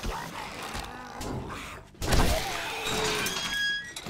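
A chain-link gate rattles as it swings open.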